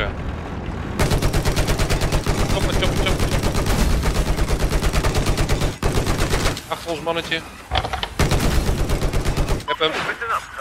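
A heavy machine gun fires in long rapid bursts.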